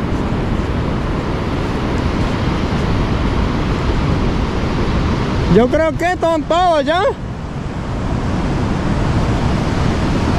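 Wind blows across the open beach.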